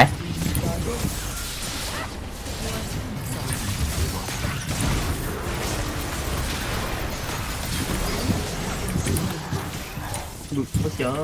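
Magic blasts and blows crash and whoosh in a fast fight.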